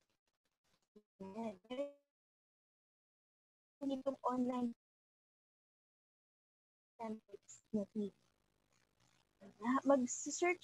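A young woman speaks calmly in bursts over an online call.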